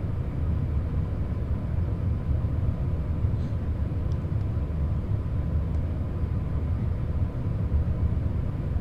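An electric multiple-unit train rumbles along rails at speed.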